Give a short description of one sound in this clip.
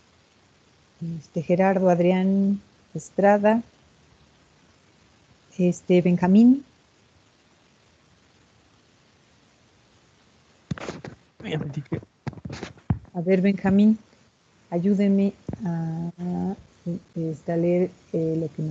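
A woman speaks through an online call, in short bursts with pauses.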